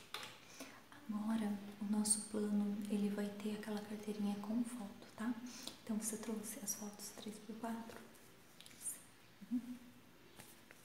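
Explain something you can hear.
A woman speaks softly and close up.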